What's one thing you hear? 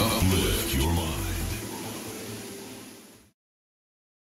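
Loud dance music with a deep thumping beat plays and fades away.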